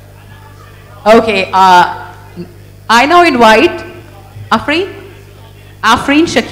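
A woman speaks into a microphone, heard through loudspeakers.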